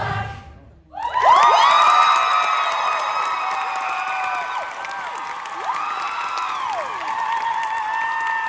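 A large choir sings sustained chords on stage, with voices sliding up and down in pitch, in a large hall.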